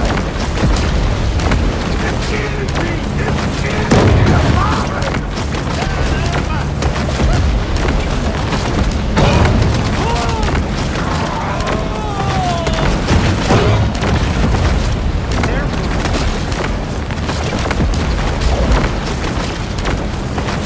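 Water splashes and churns as a shark thrashes through waves.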